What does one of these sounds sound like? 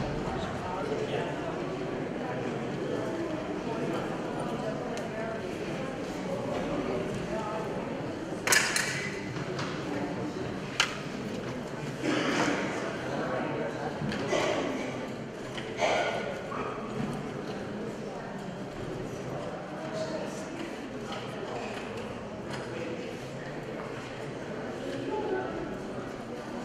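A crowd of men and women murmur and chatter quietly in a large echoing hall.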